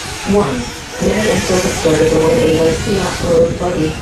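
Several men and boys talk nearby outdoors.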